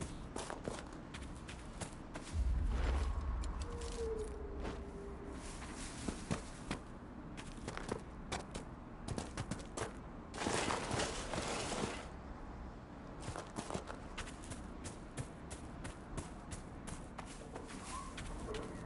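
Footsteps crunch steadily on grass and dirt.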